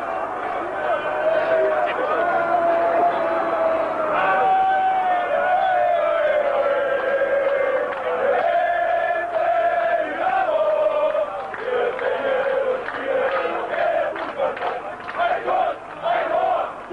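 A large crowd of men chants and sings loudly outdoors.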